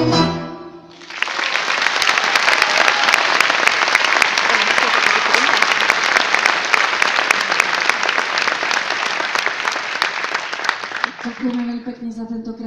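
An audience applauds and cheers in a large hall.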